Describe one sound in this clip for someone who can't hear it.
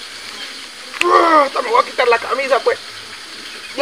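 A young man talks quickly and animatedly nearby.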